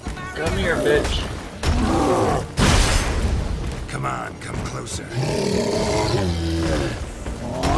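A sword slashes and strikes with sharp metallic hits.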